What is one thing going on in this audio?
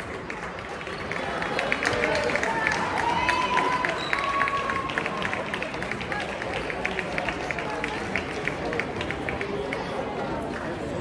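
Sneakers squeak on a hardwood floor in a large echoing gym.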